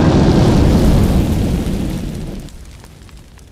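A fiery explosion roars and fades away.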